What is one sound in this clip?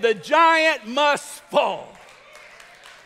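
A man shouts loudly and with animation through a microphone in a large echoing hall.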